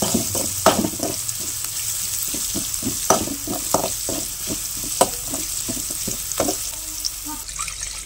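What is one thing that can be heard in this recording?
A spatula scrapes and knocks against a metal pan.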